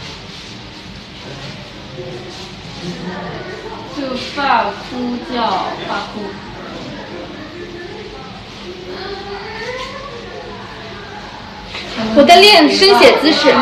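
A young woman talks close by in a lively voice.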